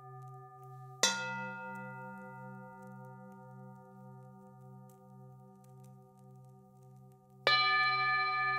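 A mallet strikes a singing bowl with a bright clang.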